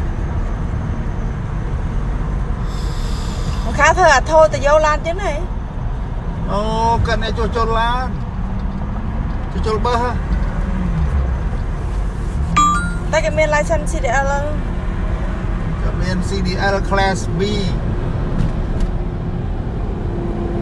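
A car engine rumbles low and steady, heard from inside the car.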